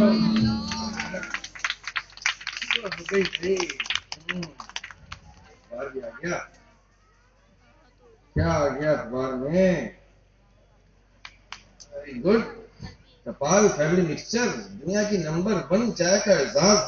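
An older man speaks through a microphone over loudspeakers, pausing now and then.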